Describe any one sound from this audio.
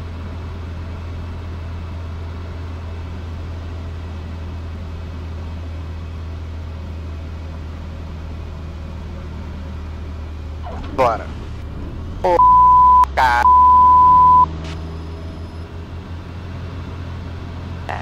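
A single-engine piston propeller plane drones, heard from inside the cabin.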